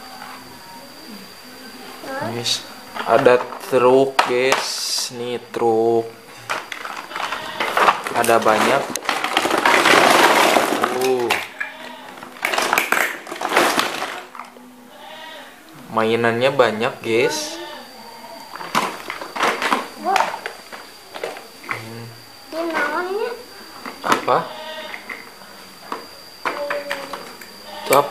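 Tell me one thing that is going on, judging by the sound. Plastic toys clatter against each other.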